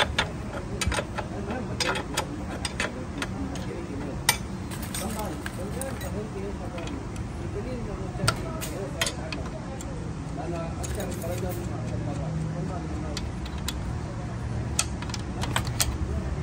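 Metal tools clink and tap against a motorcycle's rear wheel parts.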